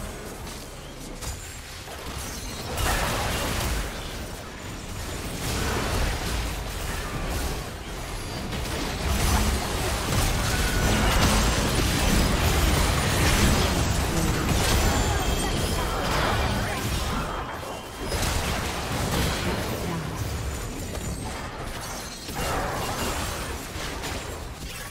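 Magic blasts and sword clashes burst in a busy fight.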